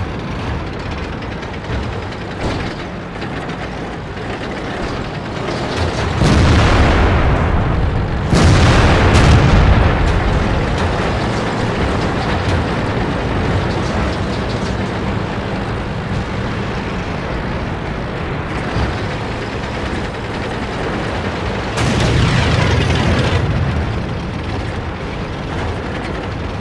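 A heavy tank's engine rumbles.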